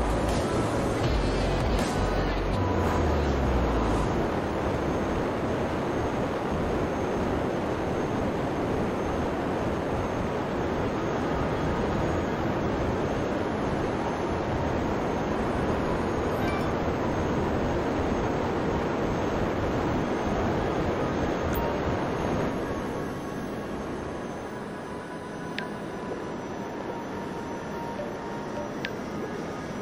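A jetpack's engines roar steadily, then quieten.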